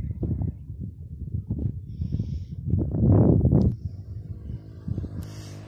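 Wind gusts roughly across the microphone outdoors.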